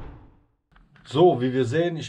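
A young man speaks casually and close.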